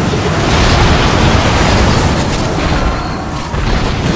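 Metal blades clash and slash.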